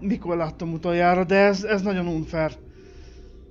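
A man speaks with animation close to a headset microphone.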